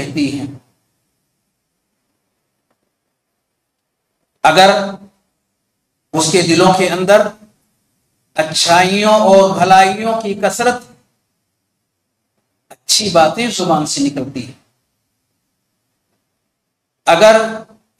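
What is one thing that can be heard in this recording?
An elderly man speaks calmly into a close microphone, in phrases with pauses between them.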